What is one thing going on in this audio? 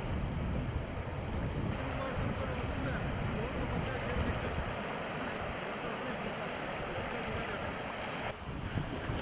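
Waves wash over the shore.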